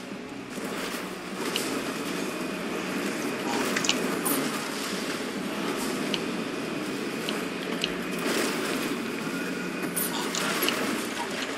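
A boost engine roars as a car speeds up.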